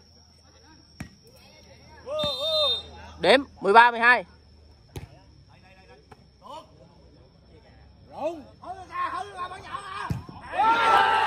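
A ball thumps off a player's hands.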